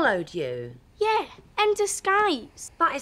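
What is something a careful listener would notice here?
A young woman speaks loudly with animation.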